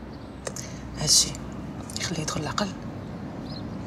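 A young woman speaks briefly and sharply, close by.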